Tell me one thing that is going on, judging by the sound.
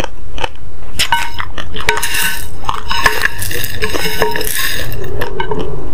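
A spoon scrapes and clinks against a plate.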